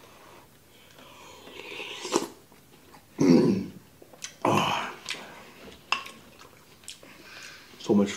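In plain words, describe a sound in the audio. A man slurps and chews food loudly up close.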